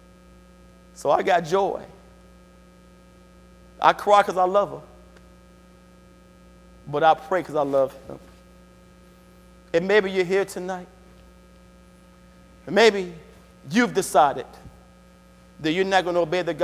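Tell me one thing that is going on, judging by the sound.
A man preaches slowly through a microphone in short phrases with pauses, echoing in a large hall.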